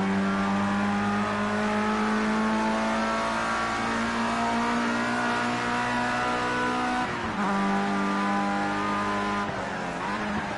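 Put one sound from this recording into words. A racing car engine revs high and steady, shifting up through the gears.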